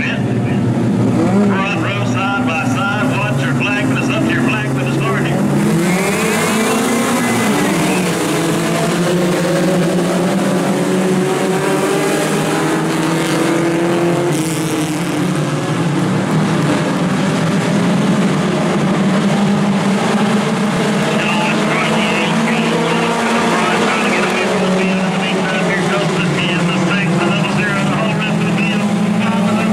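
Many race car engines roar and rev loudly, heard from a distance in the open air.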